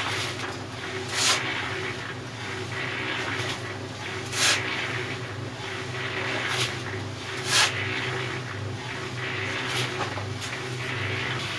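A shovel scrapes and knocks against the mixer drum.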